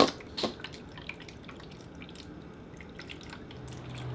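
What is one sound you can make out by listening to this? Water pours into a glass.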